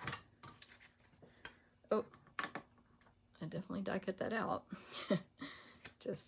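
Paper rustles as a card is picked up.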